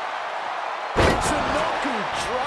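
A wooden table crashes and clatters.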